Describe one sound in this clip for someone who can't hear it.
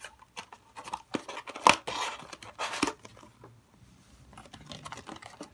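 Foil card packs rustle as fingers shift them.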